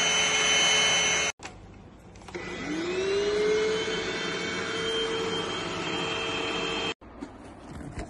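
A vacuum cleaner motor whirs with a high whine.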